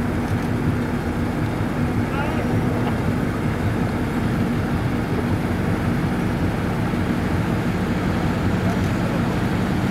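Small waves lap and slosh nearby.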